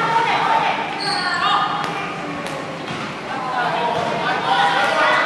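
Young women call out and chatter in a large echoing hall.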